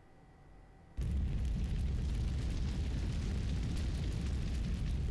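Flames roar steadily.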